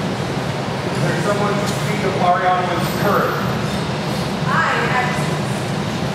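A woman speaks in a raised voice across the hall.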